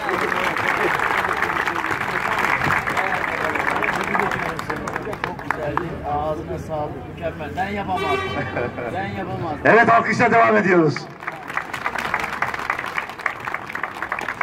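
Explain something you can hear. A crowd chatters and claps outdoors.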